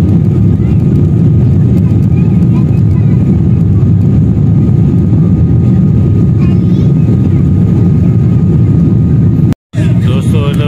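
Jet engines roar loudly and steadily as an airliner takes off.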